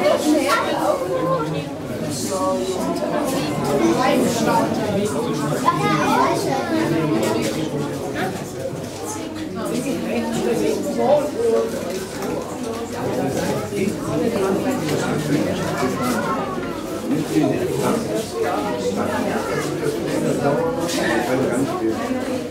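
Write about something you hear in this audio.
A lemur rustles against branches and leaves as it climbs.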